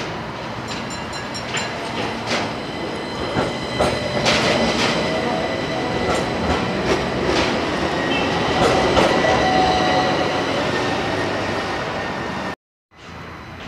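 Tram wheels squeal and rumble on the rails.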